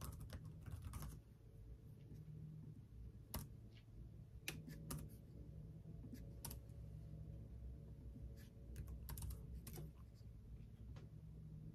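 Keys on a keyboard click in quick, uneven taps close by.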